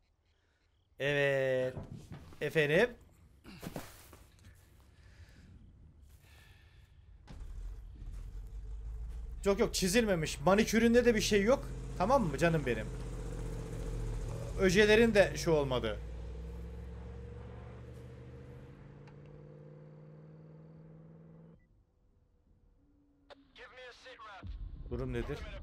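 A man talks into a microphone with animation, in bursts.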